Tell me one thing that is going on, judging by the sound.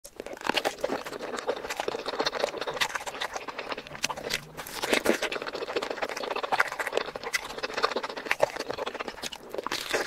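A woman chews seafood with wet smacking sounds close to a microphone.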